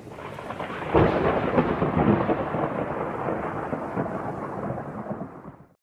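Thunder cracks and rumbles.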